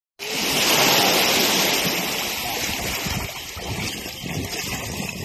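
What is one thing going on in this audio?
Small waves lap gently at the shore.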